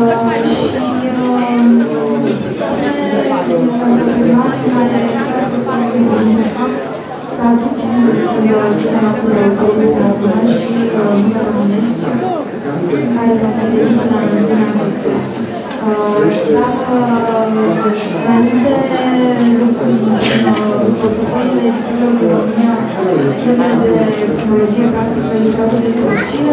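A young woman speaks steadily through a microphone and loudspeakers in a large hall.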